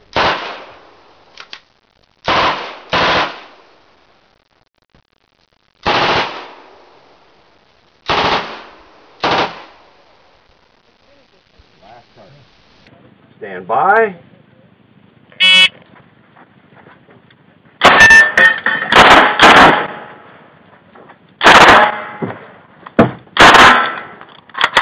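Gunshots crack loudly outdoors and echo briefly.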